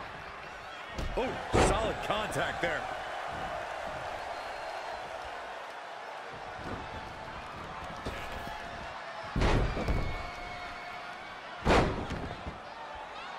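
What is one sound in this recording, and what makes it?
Bodies slam onto a wrestling mat with heavy, booming thuds.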